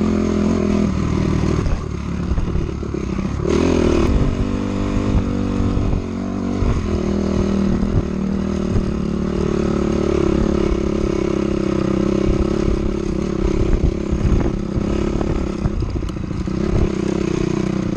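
A dirt bike engine revs loudly and changes pitch as it rides.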